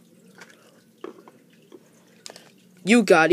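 A plastic toy brick clicks onto another brick.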